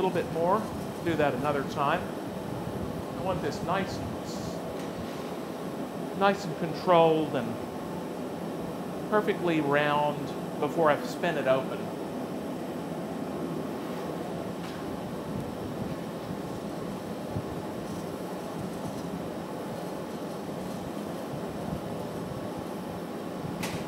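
A furnace roars steadily.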